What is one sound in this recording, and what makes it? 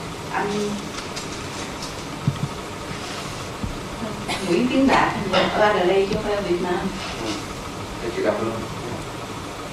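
A young woman reads out into a microphone over a loudspeaker.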